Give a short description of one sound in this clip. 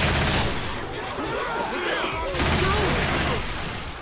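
Zombies growl and moan nearby.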